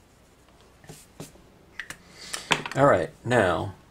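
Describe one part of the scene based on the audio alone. A rubber stamp is pressed onto paper and lifted off.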